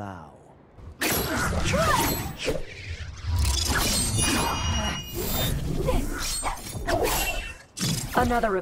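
Steel fans whoosh and swish through the air.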